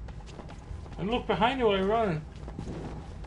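A young man wails loudly in a wavering voice, close to a microphone.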